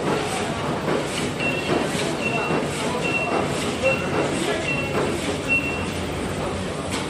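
A machine clicks in a quick, regular rhythm.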